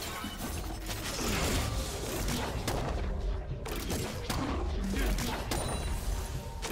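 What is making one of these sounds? Game weapons clash and strike repeatedly.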